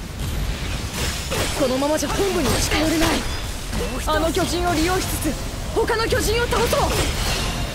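Blades slash repeatedly into flesh with sharp hits.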